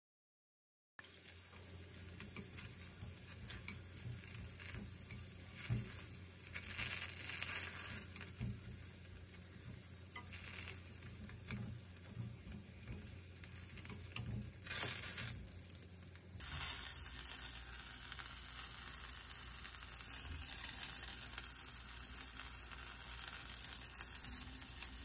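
Chopsticks tap and scrape against a pan.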